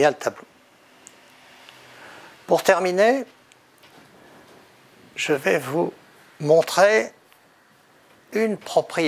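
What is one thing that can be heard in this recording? An elderly man speaks calmly in short phrases through a clip-on microphone.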